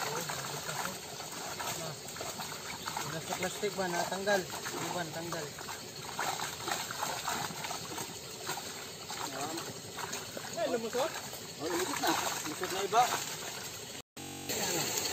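Water sloshes around wading legs.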